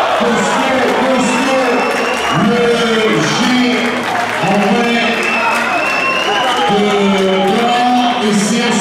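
Players slap hands in high fives.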